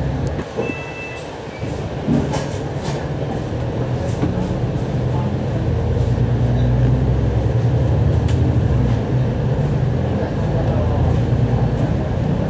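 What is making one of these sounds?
A diesel double-decker bus engine pulls away from a stop and picks up speed, heard from inside.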